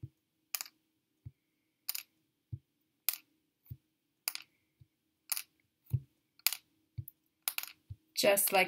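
Small wooden sticks tap lightly onto a table.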